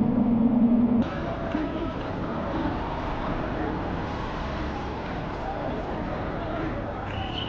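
A large crowd murmurs outdoors in a street.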